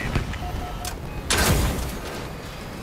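An explosion bursts in the distance.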